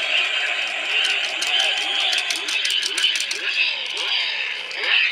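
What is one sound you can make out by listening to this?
Plastic toy parts click and rattle.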